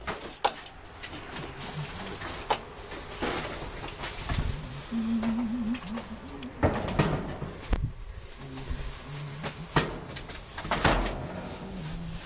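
A man rummages through plastic bags and boxes, with things rustling and knocking.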